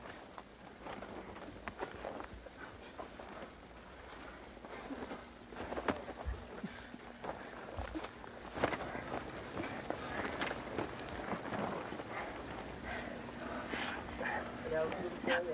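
Feet scrape and slip on dirt as people scramble up a steep slope.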